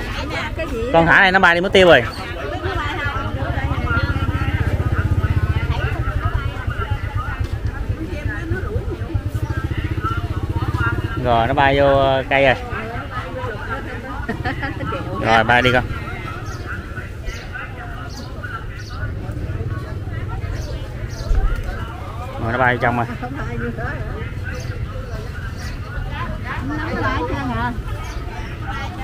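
A woman speaks loudly and briefly close by.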